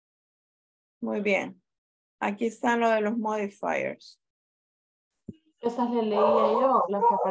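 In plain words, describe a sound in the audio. A woman speaks clearly over an online call.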